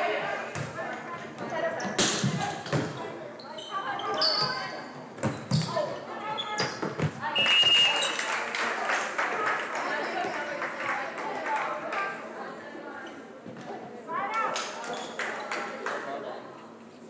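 A crowd of spectators cheers and chatters.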